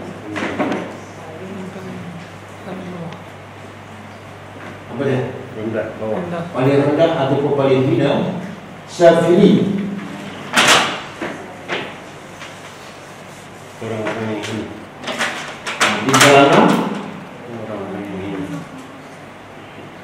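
A man speaks through a microphone in a lecturing tone, with pauses.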